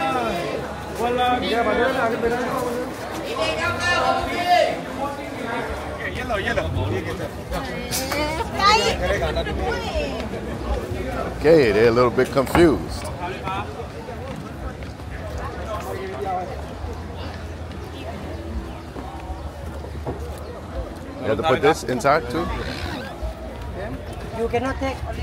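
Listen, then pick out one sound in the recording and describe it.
People talk nearby outdoors.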